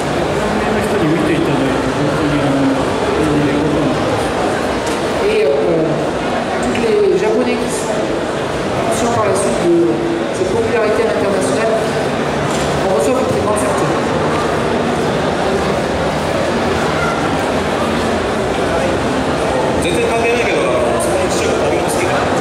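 A young man speaks with animation into a microphone, heard through loudspeakers.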